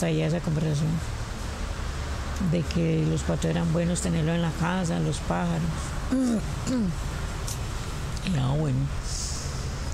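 A middle-aged woman speaks nearby in a calm, drawn-out voice.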